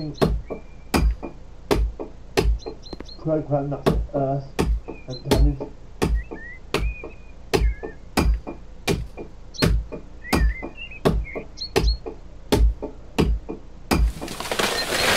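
An axe chops into wood with sharp, regular blows.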